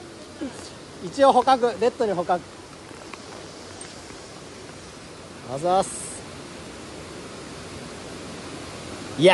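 Shallow stream water trickles over stones.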